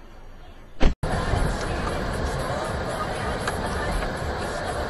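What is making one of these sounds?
A car engine hums with road noise while driving.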